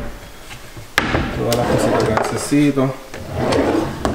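A drawer slides open with a knock.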